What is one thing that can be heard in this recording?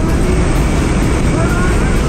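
A woman shouts excitedly over the engine noise.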